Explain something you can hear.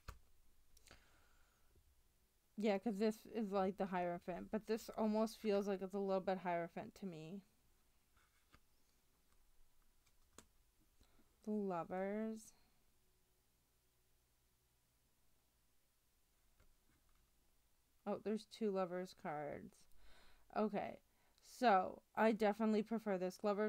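Playing cards slide and tap softly against one another.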